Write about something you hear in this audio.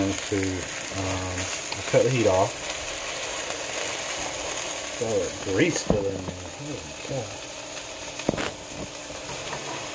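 A spatula scrapes and taps against a frying pan.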